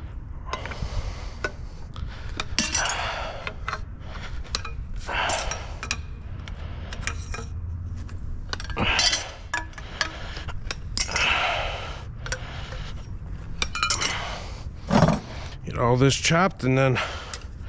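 Bolt cutters snap through metal rods with sharp clicks.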